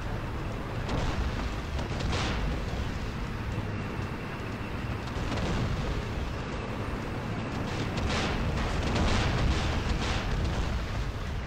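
Tank guns fire with loud booming blasts.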